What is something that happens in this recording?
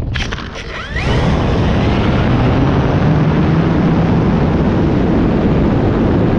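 A small aircraft engine roars and rises in pitch.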